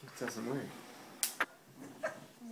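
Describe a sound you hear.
A young person blows out candles with a short puff of breath.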